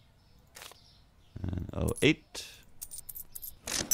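Coins clink in a cash drawer.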